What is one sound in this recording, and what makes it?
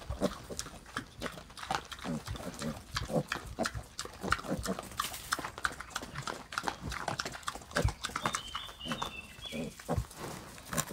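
Pigs snuffle and chew as they root in straw and dirt.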